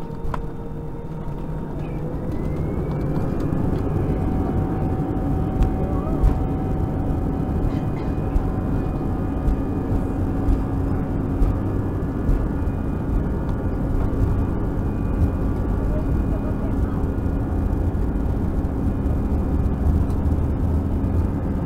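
Jet engines roar steadily as a plane taxis.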